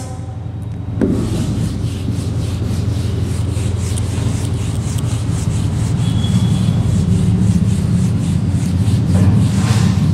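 A cloth rubs briskly across a whiteboard.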